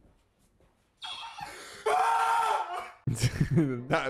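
A young man screams loudly.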